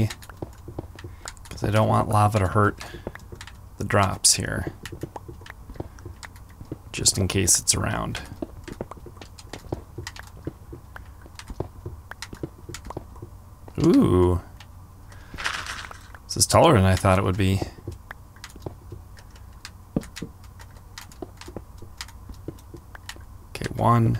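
Quick crunching taps of stone and gravel being dug sound again and again.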